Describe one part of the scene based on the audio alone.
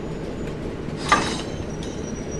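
A railway coupling clanks once with a sharp metallic knock.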